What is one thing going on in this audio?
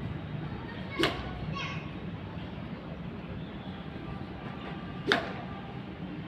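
A racket hits a ball with a sharp pop.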